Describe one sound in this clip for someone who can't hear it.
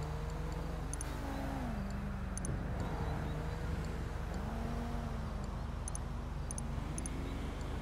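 Short soft menu clicks sound now and then.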